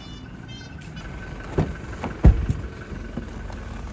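A car door handle clicks as a door is pulled open.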